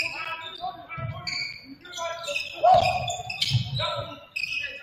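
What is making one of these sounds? A basketball thumps as it bounces on the court.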